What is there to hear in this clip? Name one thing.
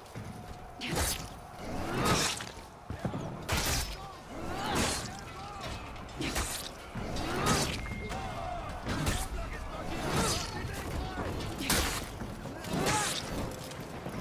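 Swords clash and slash in a fight, again and again.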